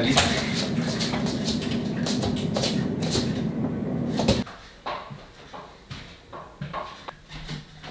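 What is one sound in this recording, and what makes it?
A metal frame clatters as a man lifts and carries it.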